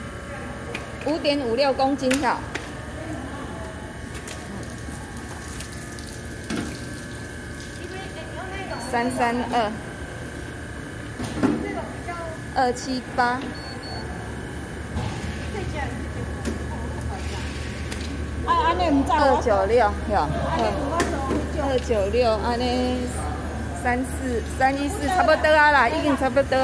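A woman talks nearby in a lively, chatty way.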